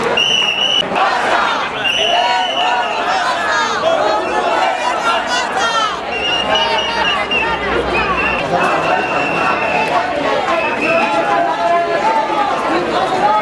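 A large crowd of men and women chatters and chants loudly outdoors.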